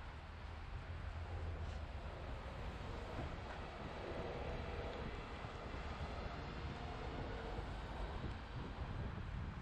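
Buses rumble past close by on a busy street.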